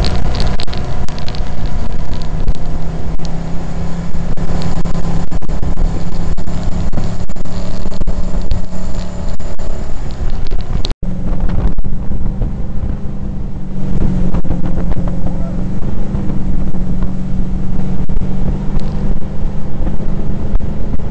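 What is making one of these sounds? A jet ski engine roars steadily at speed.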